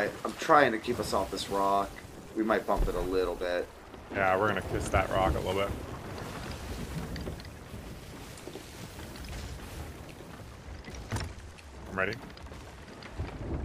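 Ocean waves wash and splash around a ship.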